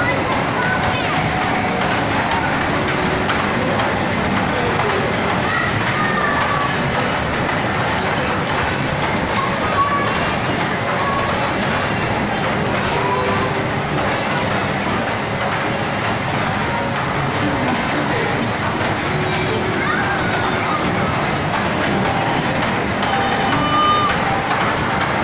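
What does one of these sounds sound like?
Small ride carriages rumble steadily along a metal track close by.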